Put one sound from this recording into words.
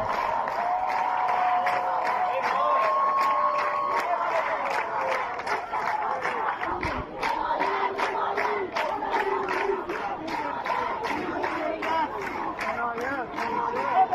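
A large crowd chants together outdoors.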